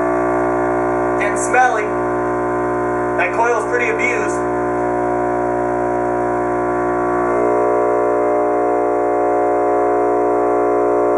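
A large loudspeaker plays a steady, buzzing drone throughout.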